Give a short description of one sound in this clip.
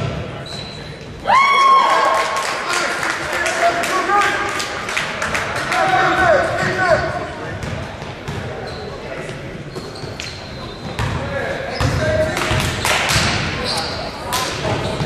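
Spectators shout and cheer in an echoing hall.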